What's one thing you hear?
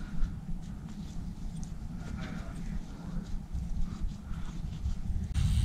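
A cloth rubs and squeaks against a small metal part.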